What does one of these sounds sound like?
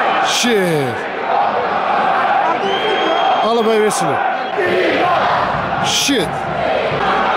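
A man shouts from close by.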